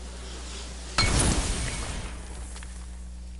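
A fiery blast bursts with a loud whoosh.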